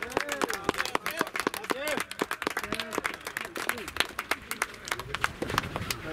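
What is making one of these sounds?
Spectators clap their hands rapidly.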